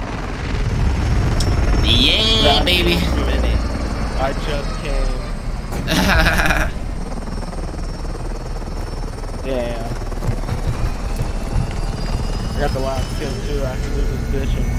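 A helicopter's rotor thumps and roars steadily.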